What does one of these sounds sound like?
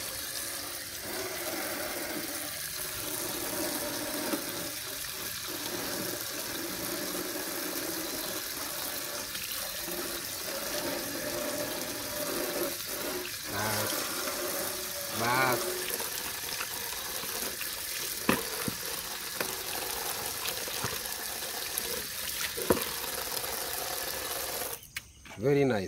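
Water runs from a tap and splashes steadily.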